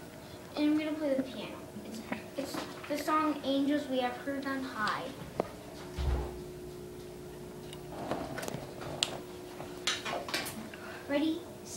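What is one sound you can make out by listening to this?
A piano plays notes.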